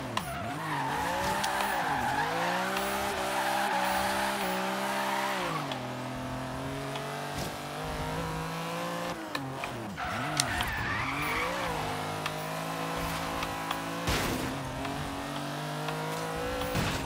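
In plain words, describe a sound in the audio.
A car engine revs hard, rising and falling as gears shift.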